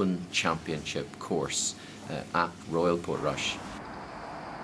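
A middle-aged man speaks with animation close to a microphone.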